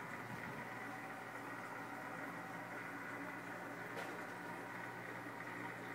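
Aquarium pumps hum steadily.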